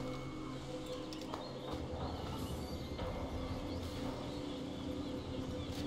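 A limp body is hoisted with a soft thud.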